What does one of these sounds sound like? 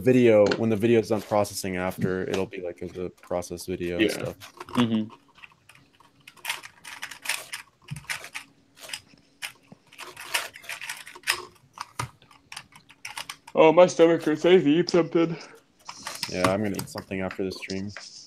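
Plastic puzzle pieces click and clatter rapidly as a cube is turned.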